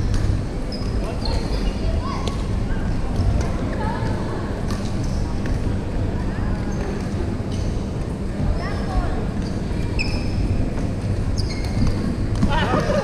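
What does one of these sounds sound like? Young girls call out across a large echoing hall.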